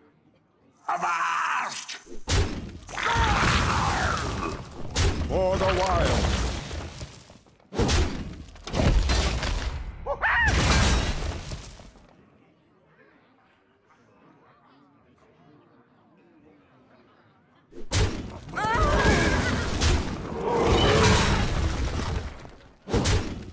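Game sound effects whoosh and clash as creatures attack.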